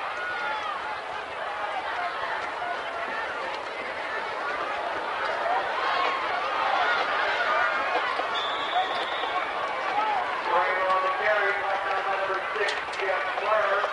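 A crowd in the stands cheers and shouts across an open stadium.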